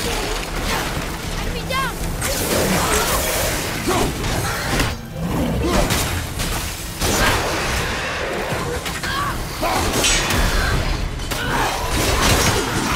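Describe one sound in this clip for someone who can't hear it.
An axe strikes and slashes with heavy thuds.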